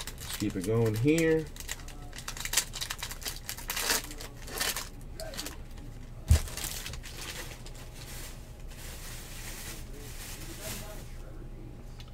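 Plastic wrappers crinkle and tear as hands open packs.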